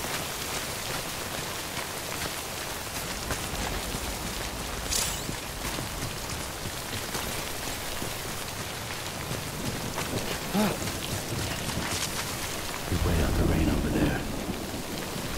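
Footsteps crunch over rocky ground.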